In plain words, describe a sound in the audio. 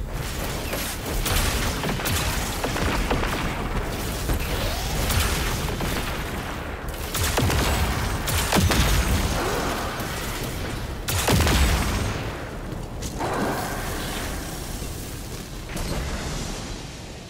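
Heavy gunfire booms repeatedly.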